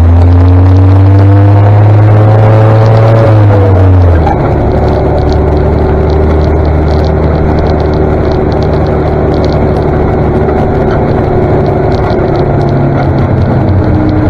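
A tractor engine rumbles loudly close ahead, its note rising and then dropping sharply.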